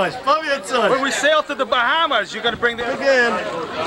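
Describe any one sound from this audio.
A middle-aged man shouts loudly and cheerfully close by.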